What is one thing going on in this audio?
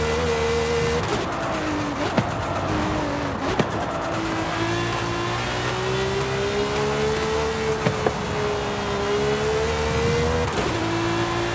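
Gear shifts cut the engine's roar with sharp pops.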